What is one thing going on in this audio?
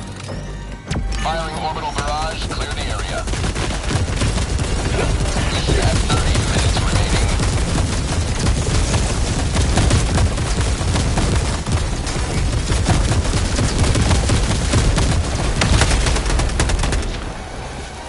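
Rapid gunfire crackles and bangs nearby.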